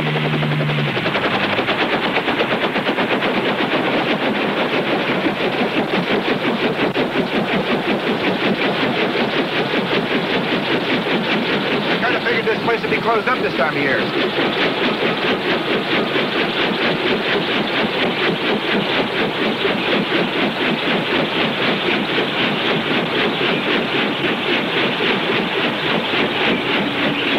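A helicopter's rotor thumps steadily and loudly close by.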